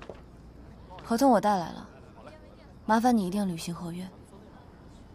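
A young woman speaks calmly and firmly, close by.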